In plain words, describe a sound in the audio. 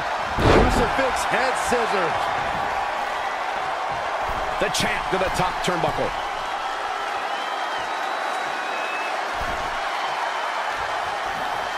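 An arena crowd roars.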